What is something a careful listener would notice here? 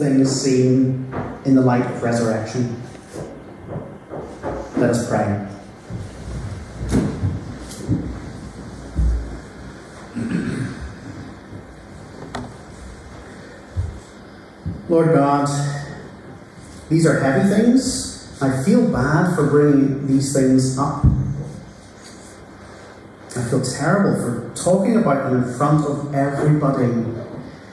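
A man speaks with feeling into a microphone, in an echoing hall.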